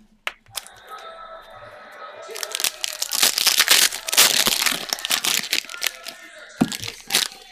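Foil card packs crinkle and tear open as hands rip them.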